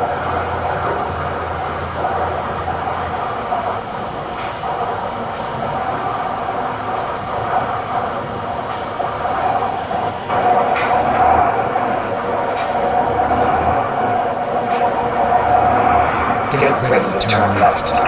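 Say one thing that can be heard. A diesel truck engine drones while cruising.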